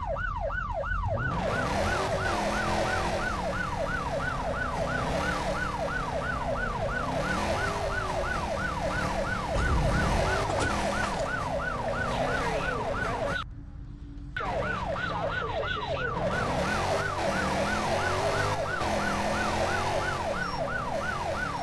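An SUV engine revs up and down as it speeds along.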